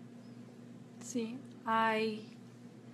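A woman speaks briefly and calmly, close to a microphone.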